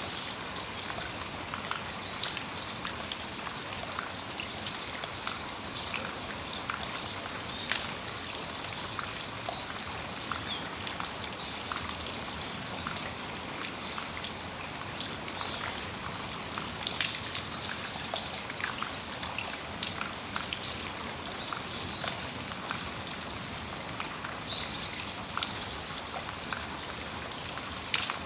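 Raindrops drip and tap irregularly on a metal awning.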